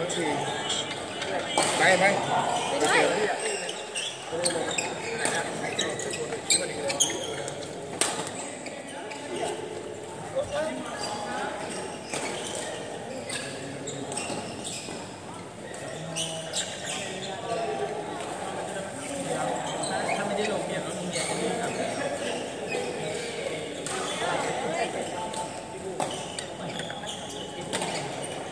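Rackets smack shuttlecocks in sharp pops.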